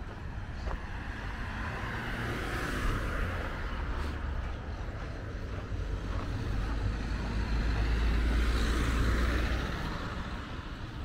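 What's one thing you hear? Cars drive past close by on a road, swelling and fading.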